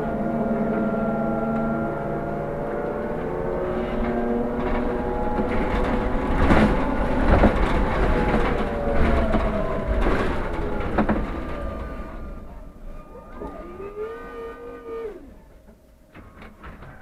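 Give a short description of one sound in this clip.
A bus engine drones and rumbles, then quiets as the bus slows.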